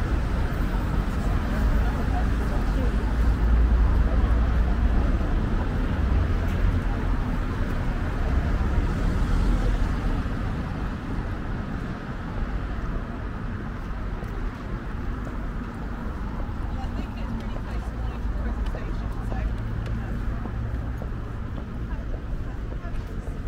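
Distant city traffic rumbles steadily.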